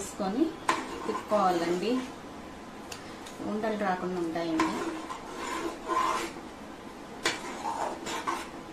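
A spoon stirs thick liquid in a pot.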